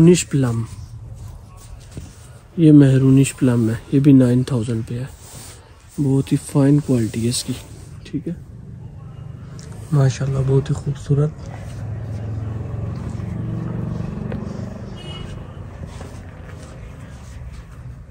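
Fabric rustles softly under hands.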